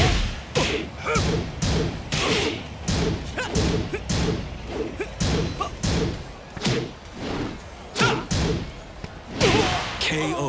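Punches and kicks land with sharp thuds in quick succession.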